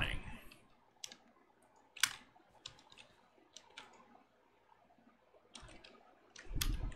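Short, sharp clicks tap now and then.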